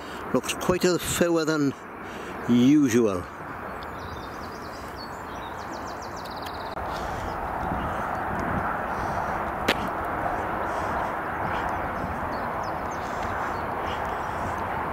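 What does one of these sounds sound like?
Traffic hums steadily on a distant road bridge.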